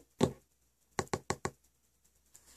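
Paper rustles and crinkles.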